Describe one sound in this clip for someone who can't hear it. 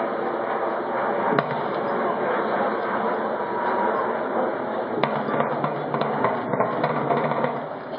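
Drums beat in a marching rhythm outdoors.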